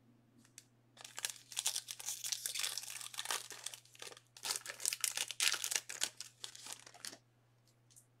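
Plastic wrappers crinkle and rustle as they are torn open.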